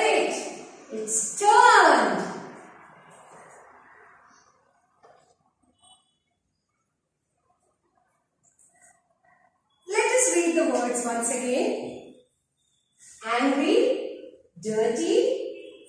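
A woman speaks clearly and with animation, close by.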